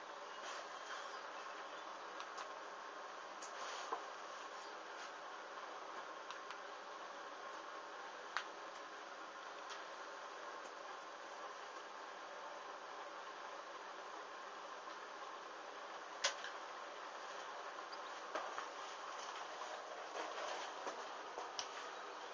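A small flame flickers and crackles softly as fabric burns.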